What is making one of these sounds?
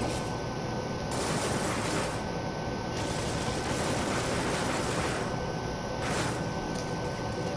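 A crackling energy burst whooshes and fizzes.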